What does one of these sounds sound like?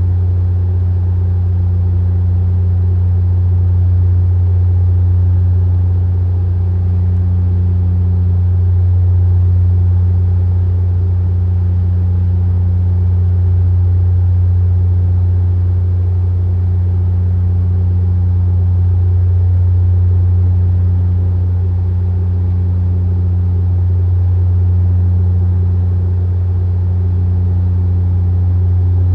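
An aircraft's engines drone steadily in a low hum from inside the cabin.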